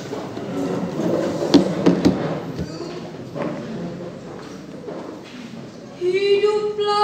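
A woman speaks through a loudspeaker in an echoing room.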